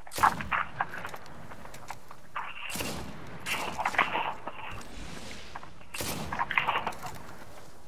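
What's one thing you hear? A rifle fires sharp single shots.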